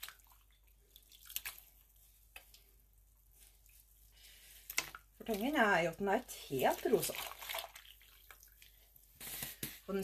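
Water drips and splashes from wet yarn into a pot.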